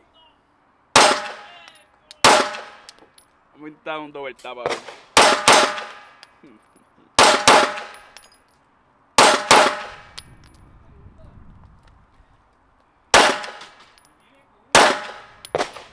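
A pistol fires loud single shots that echo outdoors.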